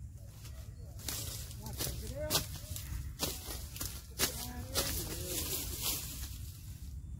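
Dry reeds crackle and snap as they are handled.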